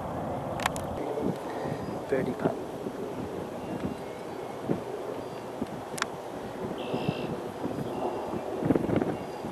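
Men talk quietly outdoors at a distance.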